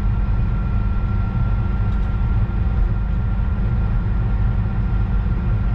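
A train rumbles steadily along the tracks with a low drone.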